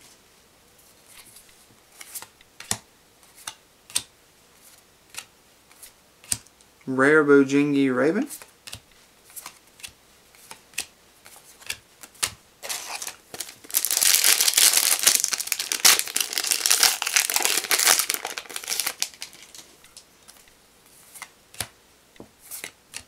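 Trading cards flick and slide against each other as they are sorted.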